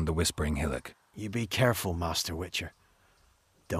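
A man speaks calmly in a deep, gravelly voice.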